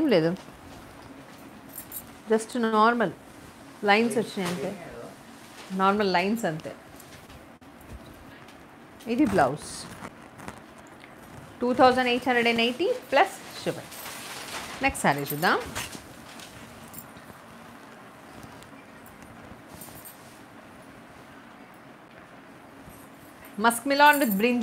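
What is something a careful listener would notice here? A woman speaks clearly and calmly close by, in short phrases.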